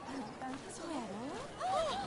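A young woman talks animatedly nearby.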